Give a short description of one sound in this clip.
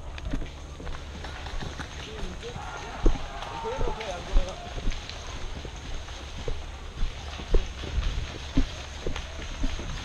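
Leaves and branches rustle against clothing as someone pushes through brush.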